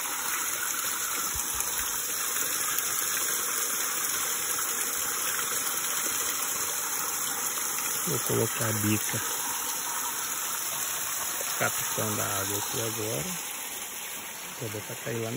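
Water gushes and splashes steadily from a pipe onto stone.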